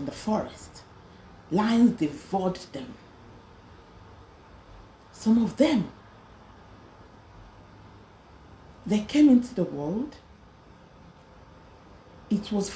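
A woman speaks slowly and expressively, close to a microphone, with pauses between phrases.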